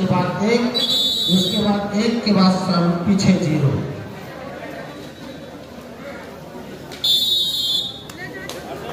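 A large crowd chatters and calls out in a big open hall.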